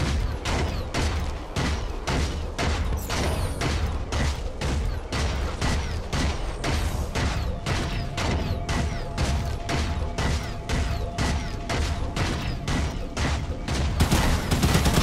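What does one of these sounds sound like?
Heavy metal footsteps of a large walking machine thud steadily.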